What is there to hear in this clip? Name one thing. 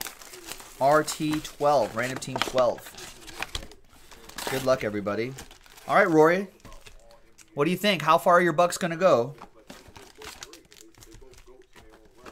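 Foil wrappers crinkle and tear as packs are ripped open.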